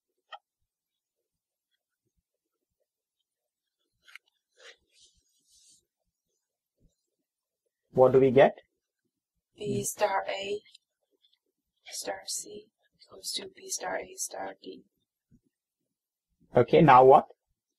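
A felt-tip marker squeaks and scratches across paper.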